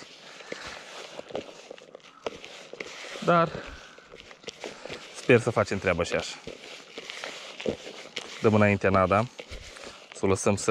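Hands scoop and squelch wet bait in a plastic bucket.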